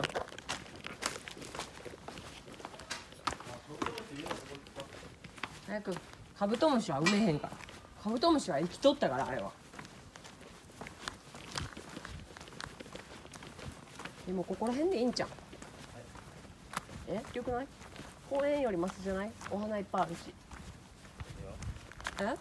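Footsteps scuff steadily on rough pavement.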